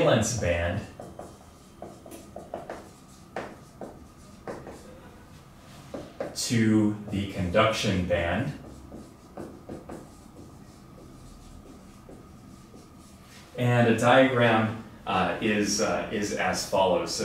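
A man speaks calmly, as if explaining, close by.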